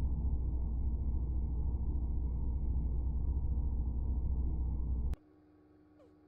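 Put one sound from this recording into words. A low spaceship engine hum drones steadily, then cuts off abruptly.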